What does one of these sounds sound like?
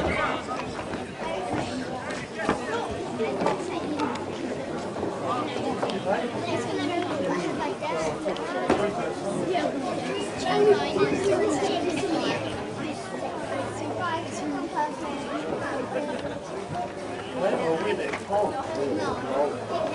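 Spectators chatter nearby outdoors.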